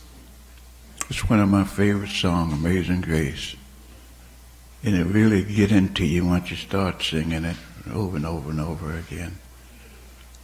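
An elderly man speaks calmly into a microphone in a room with a slight echo.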